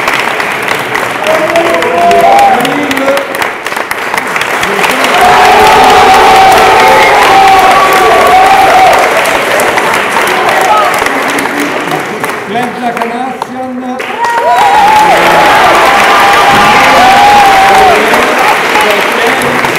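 A group of people clap their hands in steady applause.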